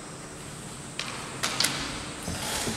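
Bamboo swords clack sharply together in an echoing hall.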